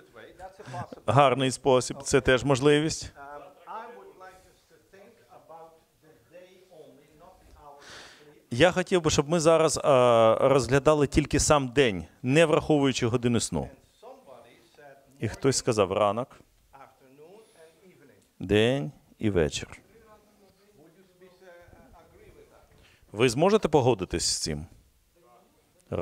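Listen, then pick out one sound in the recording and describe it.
An elderly man speaks calmly and clearly, with pauses between phrases.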